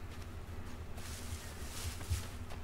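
Leaves and branches rustle as someone pushes through bushes.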